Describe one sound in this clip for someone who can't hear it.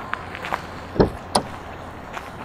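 A car door handle clicks open.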